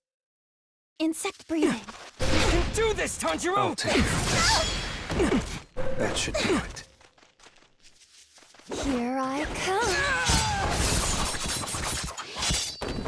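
Blades clash and heavy blows crack in quick bursts.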